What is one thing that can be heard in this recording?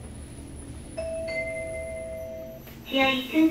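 An elevator chime rings.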